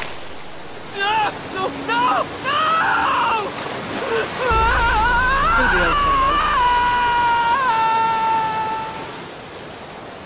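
A middle-aged man exclaims with alarm, close to a microphone.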